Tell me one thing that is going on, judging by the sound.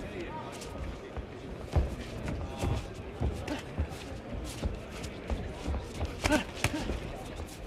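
A large crowd murmurs and shouts in an echoing arena.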